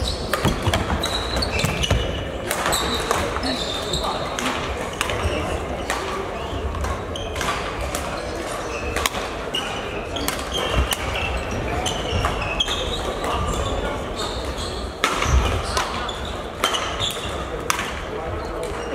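Shuttlecocks are struck with rackets with sharp pops in a large echoing hall.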